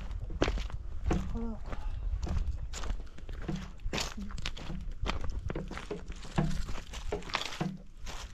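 Footsteps crunch steadily on dry stony ground.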